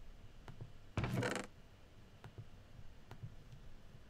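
A game chest creaks open.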